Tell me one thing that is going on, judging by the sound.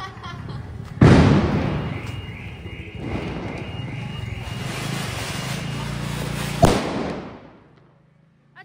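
A firework fountain hisses and sprays loudly.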